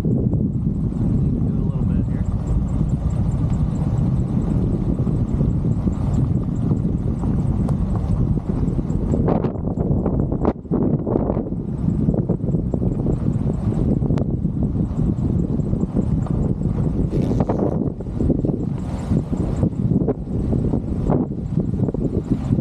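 Strong wind roars and buffets loudly outdoors.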